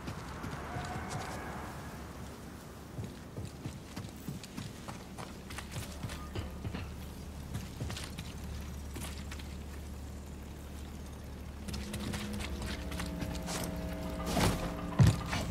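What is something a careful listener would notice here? Footsteps crunch over rock and gravel.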